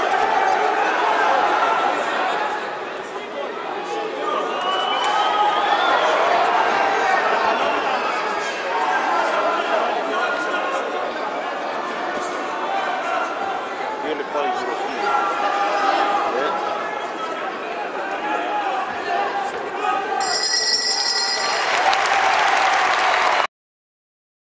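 A large crowd shouts and cheers loudly in an echoing hall.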